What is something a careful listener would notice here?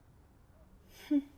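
A young woman begins to speak softly.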